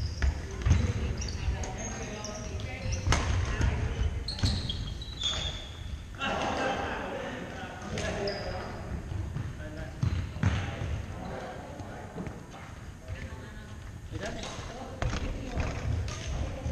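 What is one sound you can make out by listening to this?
Men call out to each other in a large echoing gym.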